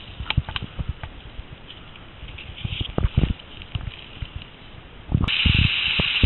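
Leaves rustle as a hand pushes through them.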